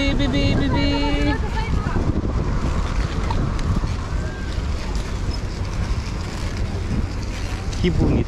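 Wind rumbles steadily across the microphone outdoors.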